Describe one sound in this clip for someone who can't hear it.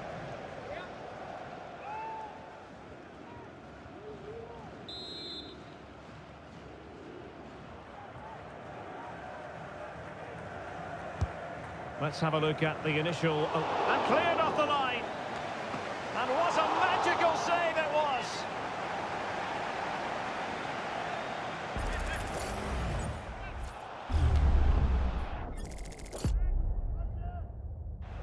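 A large stadium crowd cheers and roars, swelling loudly at times.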